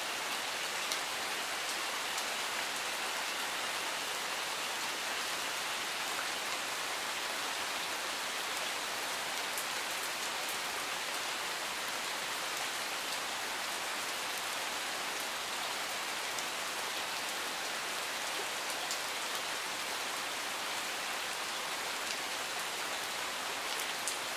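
A stream rushes steadily over rocks nearby.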